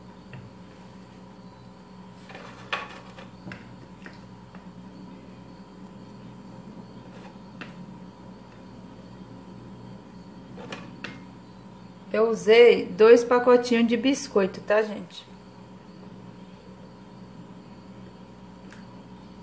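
Biscuits are set down softly on a layer of cream.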